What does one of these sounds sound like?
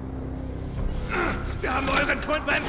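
Two men scuffle and grapple with each other.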